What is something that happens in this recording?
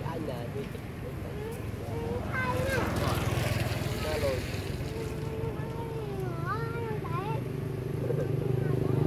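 Young monkeys squeak with high, wavering calls.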